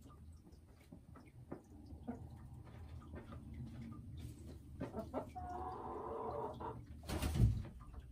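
A hen clucks softly and croons close by.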